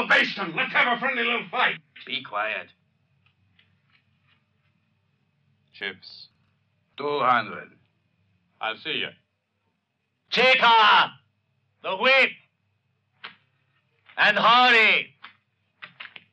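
A man speaks in a low, tense voice, close by.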